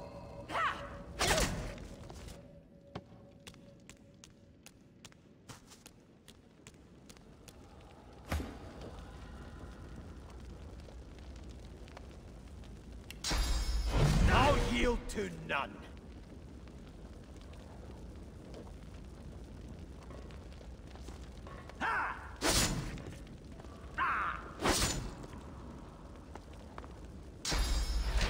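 Fiery magic blasts burst with loud whooshes.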